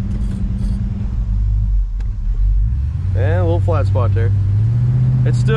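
A car engine rumbles steadily up close.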